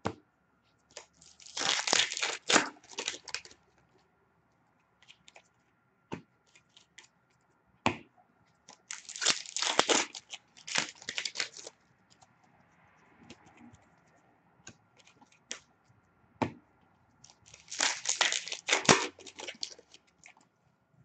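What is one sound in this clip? Card packs rustle and crinkle loudly in bursts as they are torn open.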